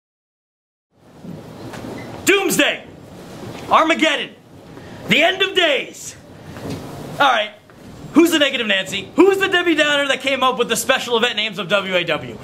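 A man speaks loudly and with animation, close by.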